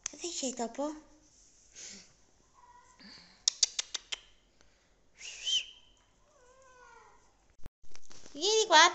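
A cat meows loudly and repeatedly.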